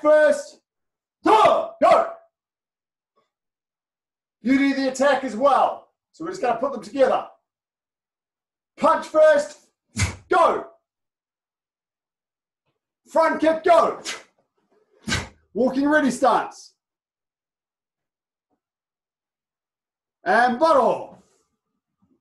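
A man speaks calmly in short bursts in a room.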